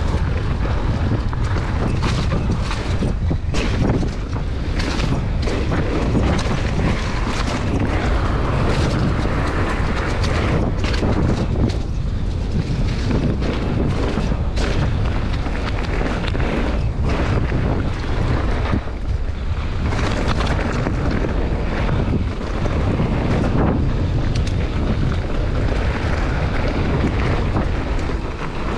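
Wind rushes loudly past, buffeting close by.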